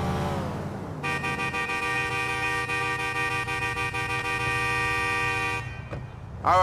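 A car alarm blares steadily.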